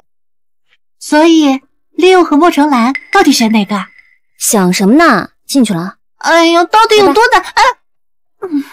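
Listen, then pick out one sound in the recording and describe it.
A young woman speaks with exasperation, close by.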